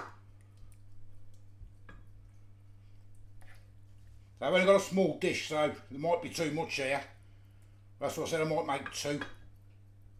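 A wooden spoon scrapes and taps against a pan.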